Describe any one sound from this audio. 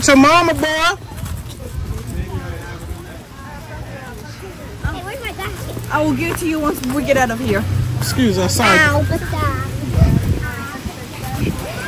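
Adults chat in the background.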